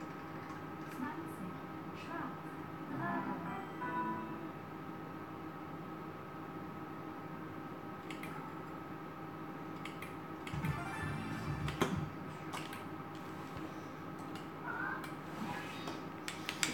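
A gaming machine plays short electronic jingles and beeps.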